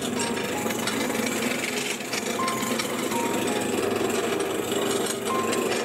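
A lathe hums steadily as a workpiece spins.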